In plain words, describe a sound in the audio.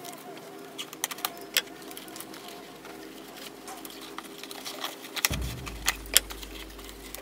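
A hammer taps on wood.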